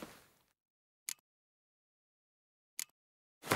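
Short soft clicks tick twice.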